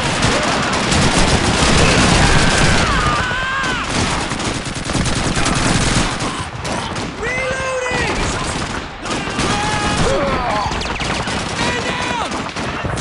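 Gunfire crackles in rapid bursts, near and far.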